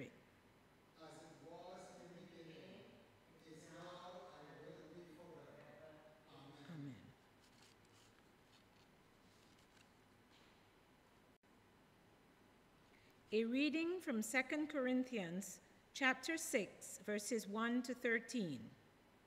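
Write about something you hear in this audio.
An older woman reads aloud calmly into a microphone in an echoing hall.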